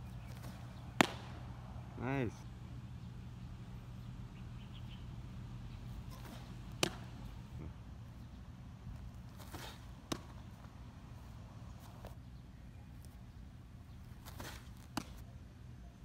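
A baseball smacks sharply into a leather glove several times.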